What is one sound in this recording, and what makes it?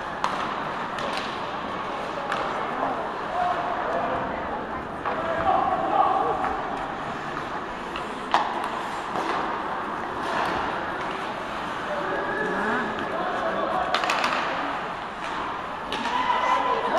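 Hockey sticks clack against a puck in sharp knocks.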